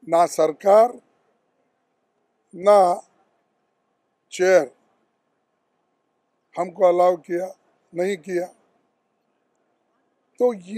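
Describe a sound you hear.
An elderly man speaks calmly in short phrases with pauses, close to a microphone.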